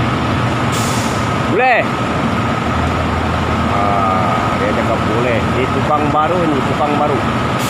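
A worker scrapes at a metal roof.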